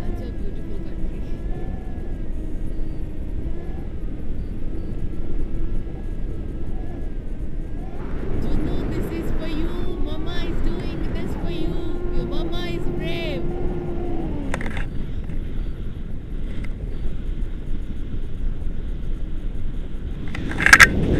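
Wind rushes past a paraglider in flight.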